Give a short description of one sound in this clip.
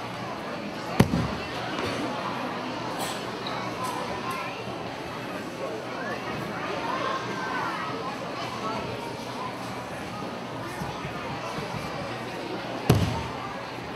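A judoka's body slams onto the mat with a loud thud.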